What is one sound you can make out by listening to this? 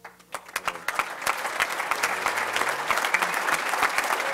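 Hands clap in applause.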